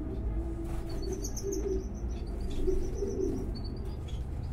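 A tiny baby bird cheeps softly in short high peeps.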